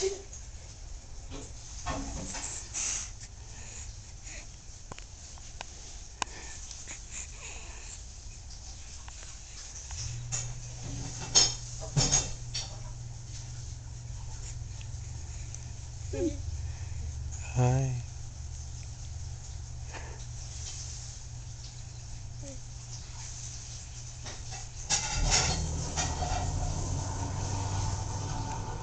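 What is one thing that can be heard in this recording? A baby coos and gurgles close by.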